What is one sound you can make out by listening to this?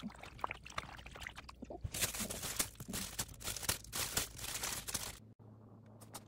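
Water splashes and swishes as a hand stirs it in a basin.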